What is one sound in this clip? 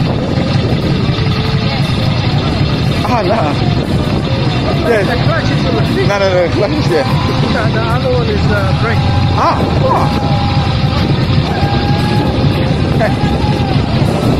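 A motorcycle engine idles with a deep, steady rumble.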